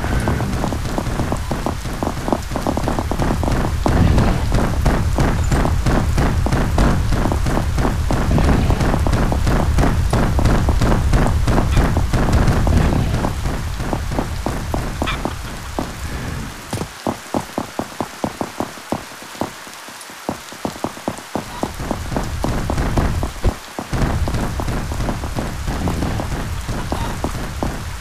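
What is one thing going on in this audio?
Quick footsteps tap on hard stone.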